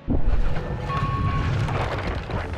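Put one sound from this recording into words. A short electronic game chime rings out.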